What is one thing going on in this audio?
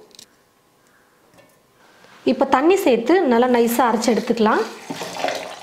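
Water pours into a metal jar.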